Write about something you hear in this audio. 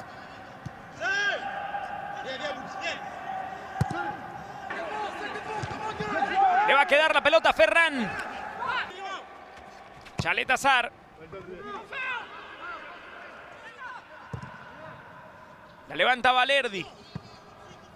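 Men shout to each other loudly from a distance, echoing around an empty stadium.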